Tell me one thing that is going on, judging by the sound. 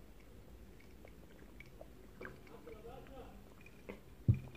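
A woman drinks a fizzy drink with gulping sounds.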